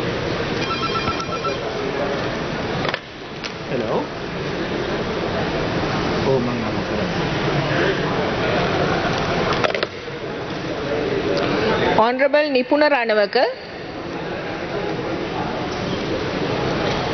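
A crowd of men murmurs and chatters in a large room.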